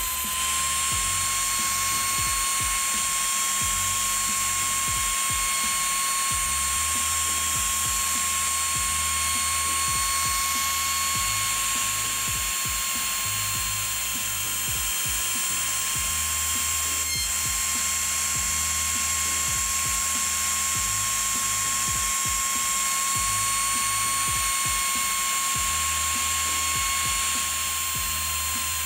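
A router spindle whines steadily as it carves into a plastic sheet.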